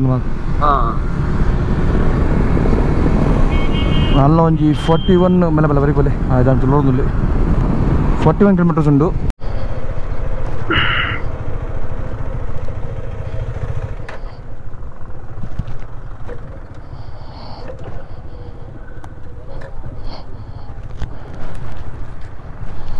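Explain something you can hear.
A motorcycle engine hums and revs while riding.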